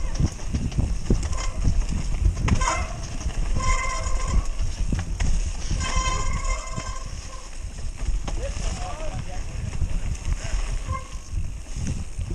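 Wind rushes loudly past a fast-moving bike.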